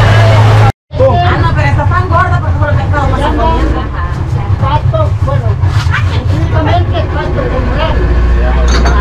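Men talk and chat close by.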